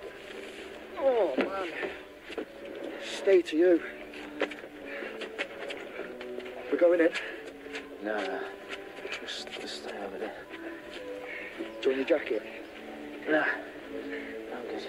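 A young man speaks with concern, close by.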